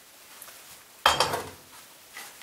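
A metal frying pan clatters down onto a stove.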